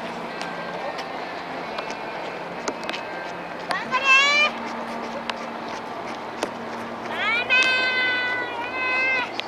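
Runners' footsteps patter on a paved road outdoors.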